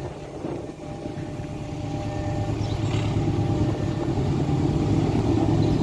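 A train rumbles closer along the tracks, growing louder.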